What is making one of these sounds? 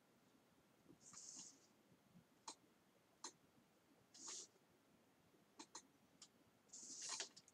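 A pen scratches across paper in short strokes.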